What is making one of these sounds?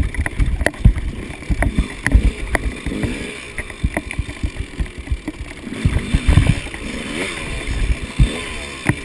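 A two-stroke enduro bike revs as it climbs a rocky trail.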